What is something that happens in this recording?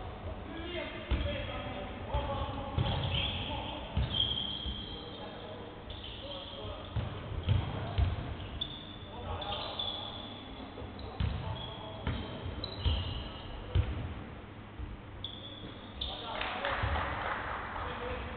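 A basketball bounces on a wooden floor with hollow thuds.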